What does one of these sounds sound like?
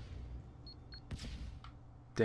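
An explosion bursts with a crackle.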